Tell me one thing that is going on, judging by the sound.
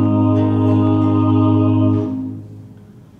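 A choir of men and women sings together in an echoing hall.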